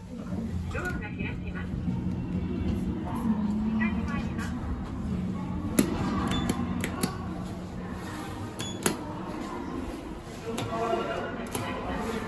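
Elevator buttons click as they are pressed.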